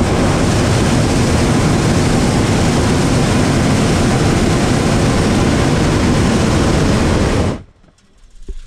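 A hot-air balloon burner roars.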